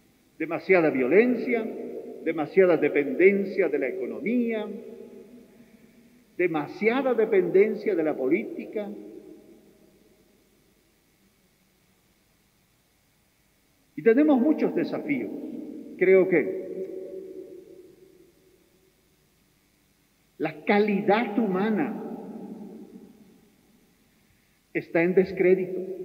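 A middle-aged man speaks with animation into a microphone, his voice echoing through a large hall.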